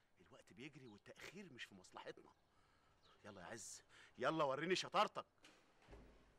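A middle-aged man speaks angrily and forcefully, close by.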